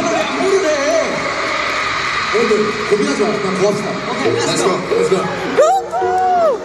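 A young man sings into a microphone, heard loudly through loudspeakers in a large hall.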